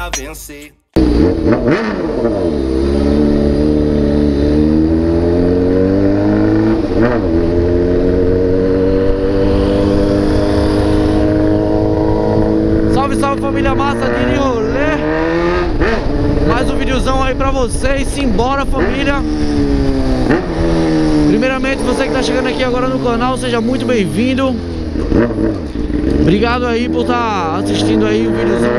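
A motorcycle engine revs up and down as the bike rides along a street.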